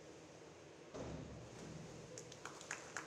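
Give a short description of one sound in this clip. A diver splashes into the water in an echoing indoor pool.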